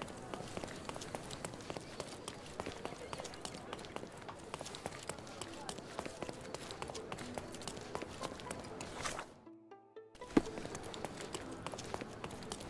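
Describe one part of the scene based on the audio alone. Quick footsteps run on cobblestones.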